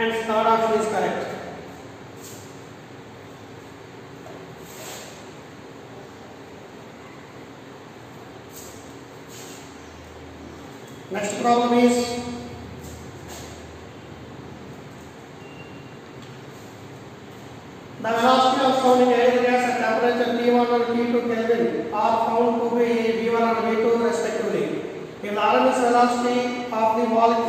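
A man speaks calmly, explaining, close by.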